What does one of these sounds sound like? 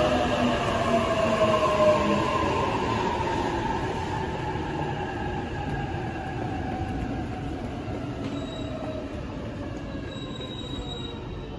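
An electric train rolls in and slows, its motor whine falling in pitch.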